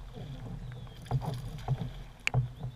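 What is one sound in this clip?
A fish splashes at the water's surface nearby.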